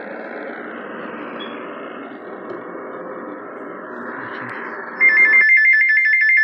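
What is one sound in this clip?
A radio hisses with a faint broadcast.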